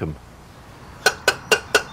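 An elderly man speaks calmly, close by.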